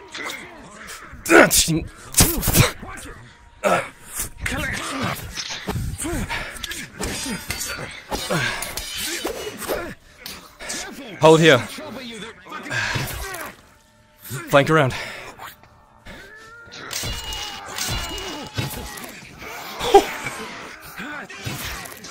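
Swords and axes clash and thud in a fight.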